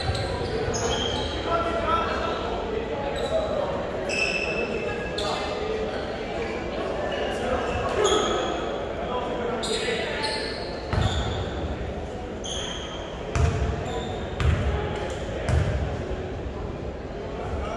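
Players call out to each other in an echoing gym.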